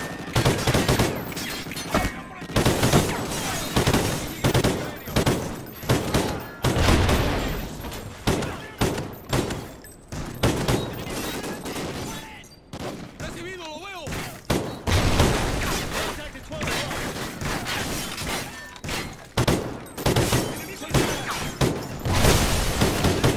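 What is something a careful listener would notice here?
A rifle fires in quick bursts.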